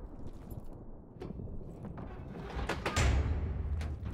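A heavy metal door is pushed open with a dull scrape and thud.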